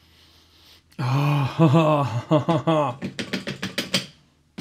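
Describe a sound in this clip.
A man speaks in a loud, animated voice close by.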